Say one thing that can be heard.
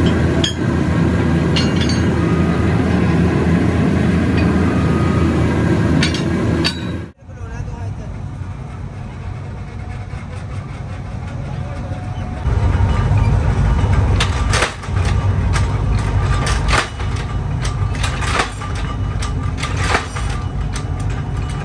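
A heavy power press rumbles steadily.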